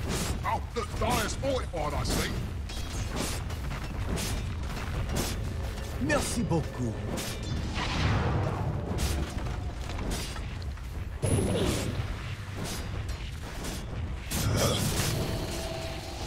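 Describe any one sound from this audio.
Spell effects and weapon strikes clash in a game battle.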